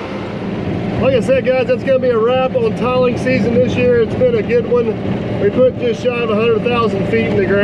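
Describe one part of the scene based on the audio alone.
A middle-aged man talks with animation, close to a microphone.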